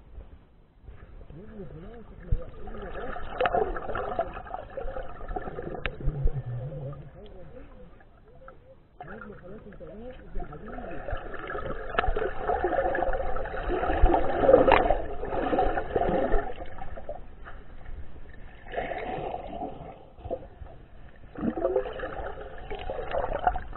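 Water sloshes and gurgles close by, heard muffled from underwater.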